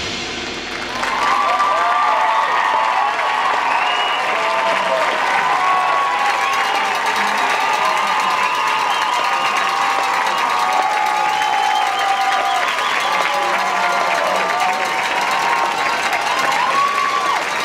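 A large crowd cheers and screams in an open stadium.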